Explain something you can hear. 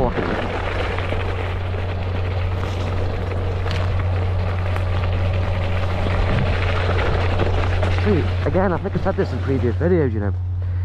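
Tyres roll and crunch over a dirt path.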